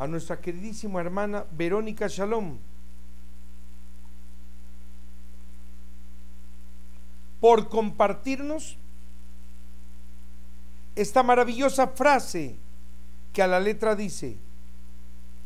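An older man speaks calmly into a microphone, with long pauses.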